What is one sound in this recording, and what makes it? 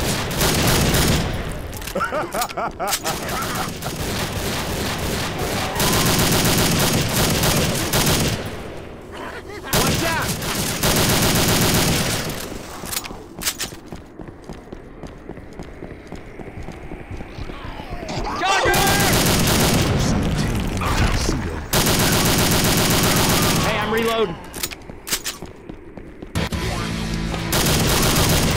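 A rifle fires in rapid bursts of gunfire.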